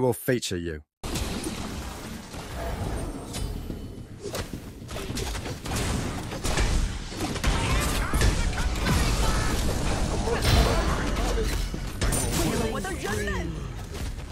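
Game weapons clash and magic effects whoosh and crackle.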